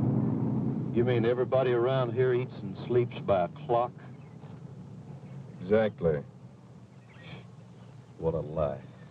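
A second man answers in a conversational tone.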